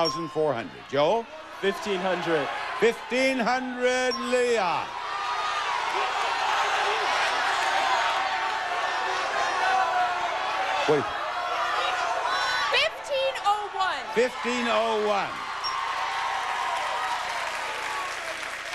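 A studio audience cheers and shouts loudly.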